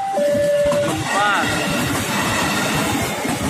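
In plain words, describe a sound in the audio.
A train rumbles past close by with squealing wheels.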